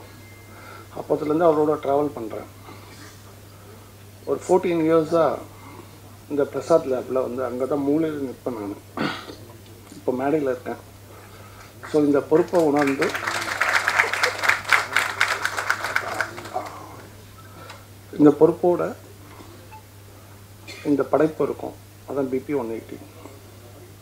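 A man speaks into a microphone in short, emphatic phrases with pauses between them.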